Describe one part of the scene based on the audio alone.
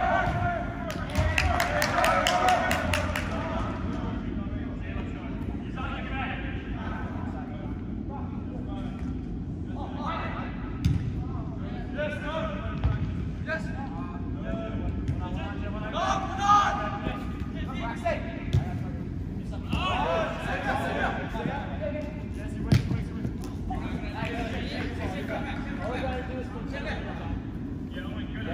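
Young players shout and call out to each other in a large echoing indoor hall.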